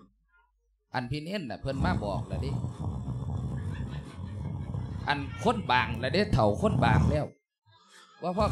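Another young man talks with animation into a microphone.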